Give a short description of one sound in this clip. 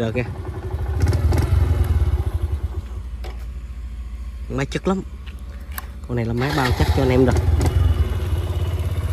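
A motorcycle engine revs up briefly and settles back down.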